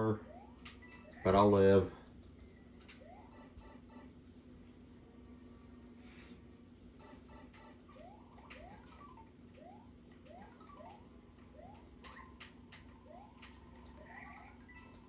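Short electronic blips and clicks come from a video game.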